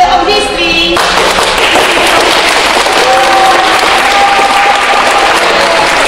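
A group of children applauds.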